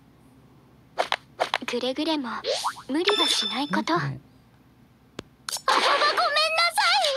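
Battle sound effects whoosh and ring.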